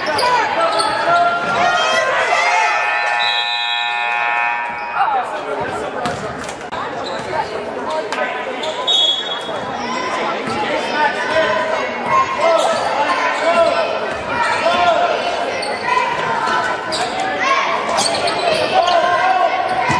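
A crowd of spectators talks and calls out in a large echoing gym.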